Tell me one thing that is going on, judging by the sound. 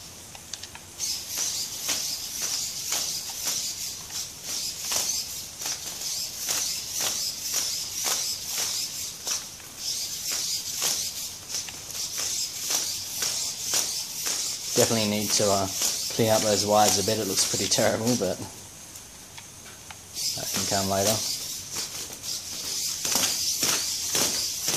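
Small servo motors whir busily as a robot walks.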